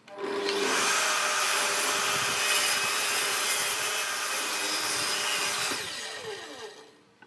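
A table saw rips through a pine board.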